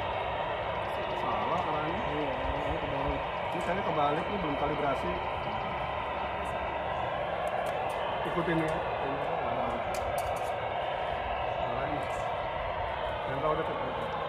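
A man talks with another person outdoors.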